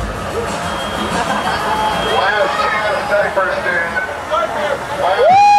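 A crowd of young people shouts and cheers loudly in a large, crowded hall.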